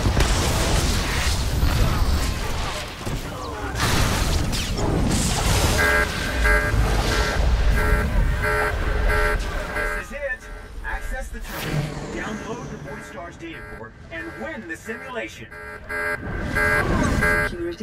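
Blasts and impacts thud.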